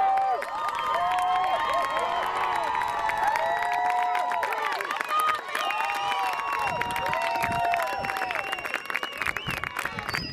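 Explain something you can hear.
Young men cheer and shout in celebration outdoors.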